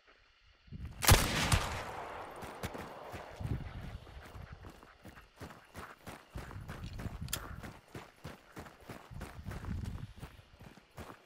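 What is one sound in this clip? Footsteps crunch quickly on a dirt path outdoors.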